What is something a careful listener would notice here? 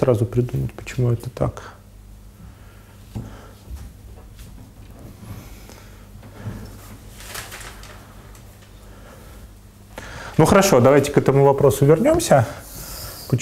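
A man lectures calmly.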